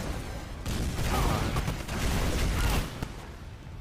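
Explosions boom and rumble in a loud battle.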